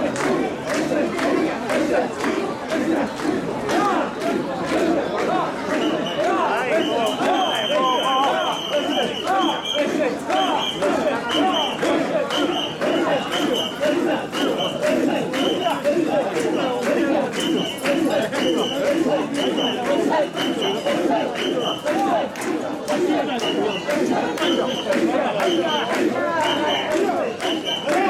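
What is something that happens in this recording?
Many people shout and cheer all around.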